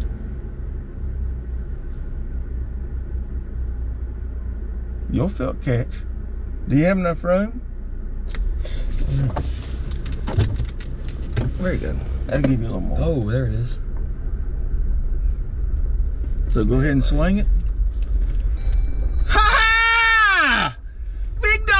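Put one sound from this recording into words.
An engine hums steadily inside a moving vehicle.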